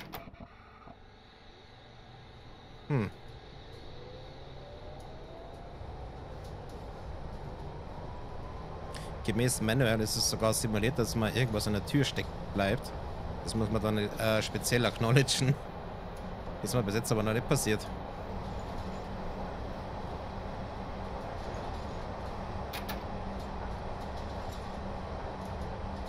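Train wheels rumble steadily along the track.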